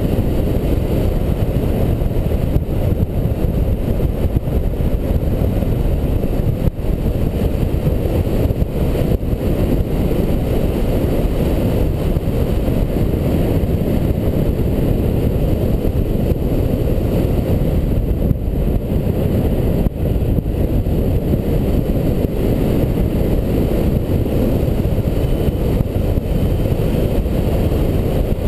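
Strong wind rushes steadily past a microphone high in open air.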